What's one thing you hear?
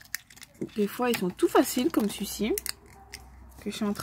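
A plastic capsule snaps open.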